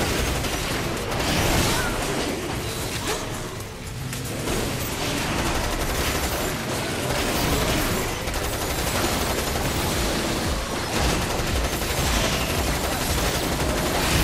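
Metal clashes and impacts ring out repeatedly.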